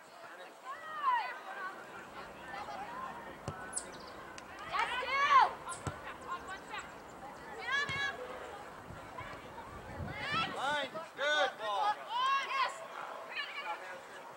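Young women shout to each other across an open field outdoors.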